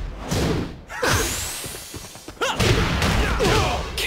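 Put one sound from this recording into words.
A burst of fire whooshes and crackles.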